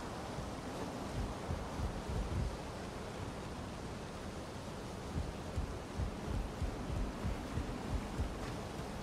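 Footsteps thud on a wooden rope bridge.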